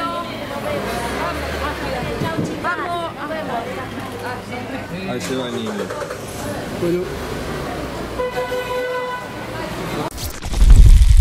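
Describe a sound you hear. A crowd of women talk and shout excitedly close by.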